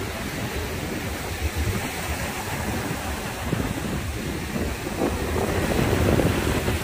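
Waves break and wash onto a pebbly shore.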